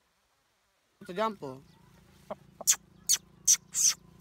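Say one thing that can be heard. A dog whines and yelps close by.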